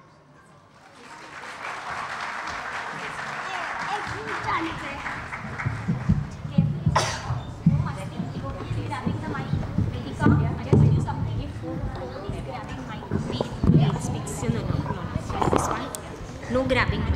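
Children chatter and shuffle their feet on a wooden stage.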